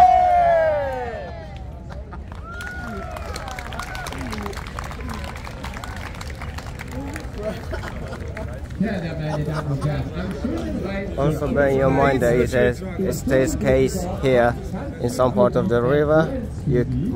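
A crowd murmurs outdoors in a wide open square.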